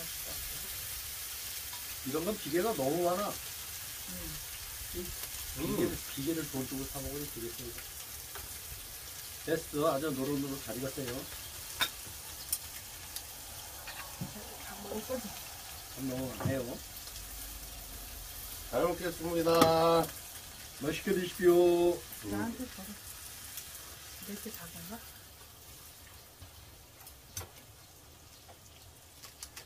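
Metal tongs scrape and clink on a grill pan.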